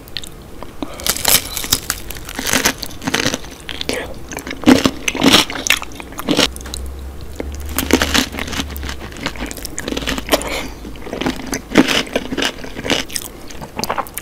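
A woman bites into crunchy toasted bread close to a microphone.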